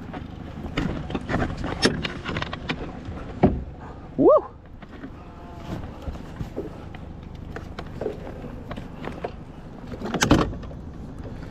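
Knocks and clunks sound on the boat's metal hull as gear is handled.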